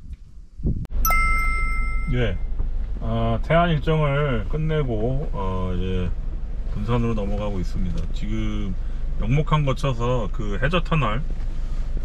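A vehicle's engine hums steadily from inside the cab.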